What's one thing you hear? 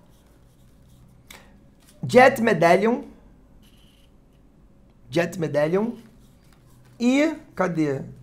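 Trading cards shuffle and rustle in a hand.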